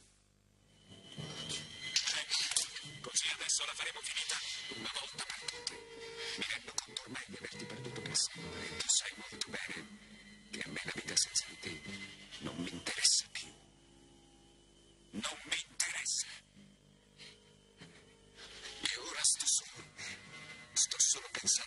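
A woman cries out and sobs.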